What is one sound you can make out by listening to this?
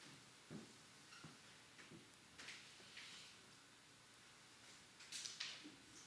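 A man speaks quietly and haltingly into a microphone.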